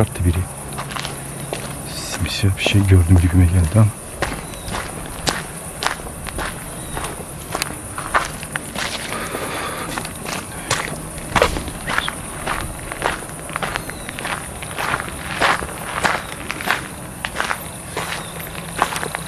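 Footsteps crunch slowly on rough ground.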